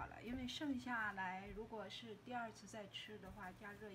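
Hands roll a rope of dough.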